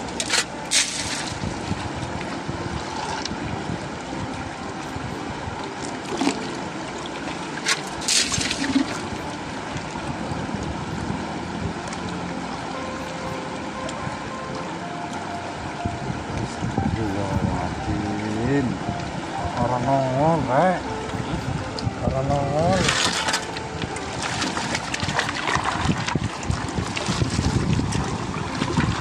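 Water sloshes and swirls in a wooden pan.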